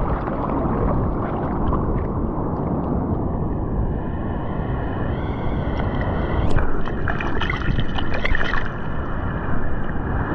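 Hands splash in the water while paddling.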